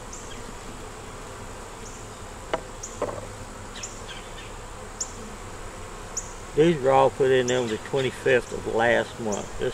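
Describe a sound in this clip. A hive tool pries a wooden frame loose with a creak.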